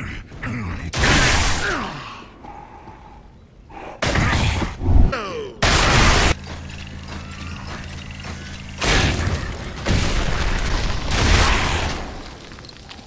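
Gunfire rattles in loud, heavy bursts.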